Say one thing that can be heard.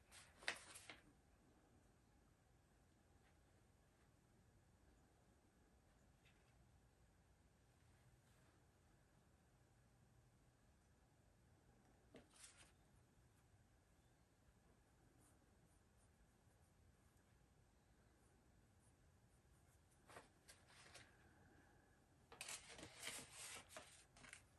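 Paper rustles and crinkles as sheets are handled close by.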